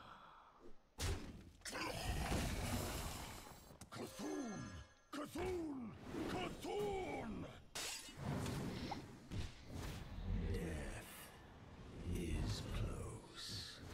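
Game sound effects whoosh and chime in bursts.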